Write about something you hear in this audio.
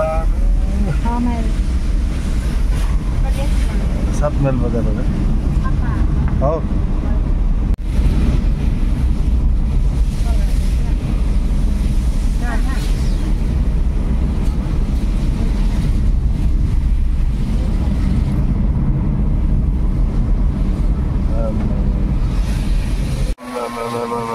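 Tyres hiss on a wet road as a car drives along.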